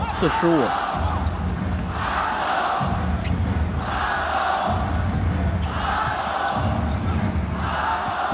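A large crowd chants and cheers in rhythmic waves in a big echoing arena.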